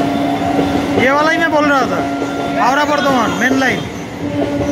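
A train horn blares twice with a bending pitch.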